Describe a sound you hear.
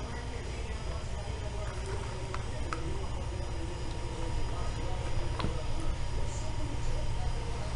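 Powdered soap pours softly into a plastic bowl.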